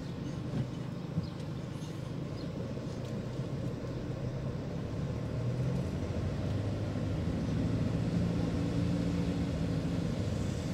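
A car engine hums steadily from inside the car as it drives slowly along the street.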